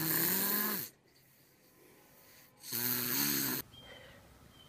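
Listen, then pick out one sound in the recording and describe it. A young child snores loudly while asleep.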